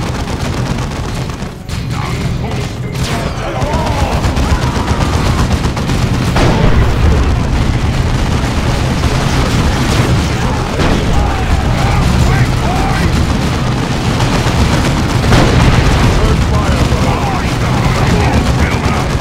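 Gunfire and explosions rattle and boom throughout a battle.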